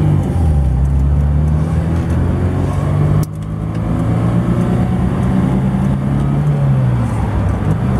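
Tyres roll along the road with a low rumble.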